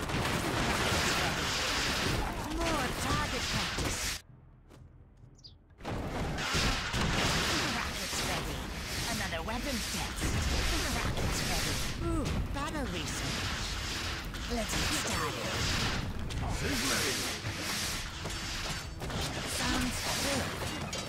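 Battle sounds clash and rumble.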